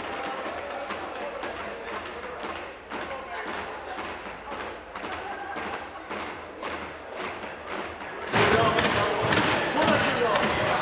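A crowd applauds steadily in a large echoing hall, growing louder near the end.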